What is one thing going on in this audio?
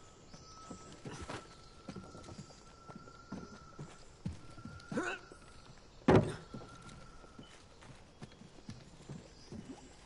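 Footsteps thud on wooden boards and stone.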